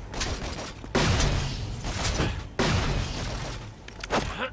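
A futuristic gun fires loud, rapid blasts.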